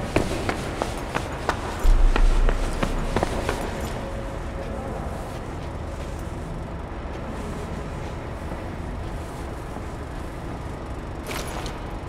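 Footsteps crunch quickly on gravel and stone.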